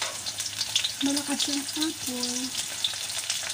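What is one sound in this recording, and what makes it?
A woman speaks briefly nearby.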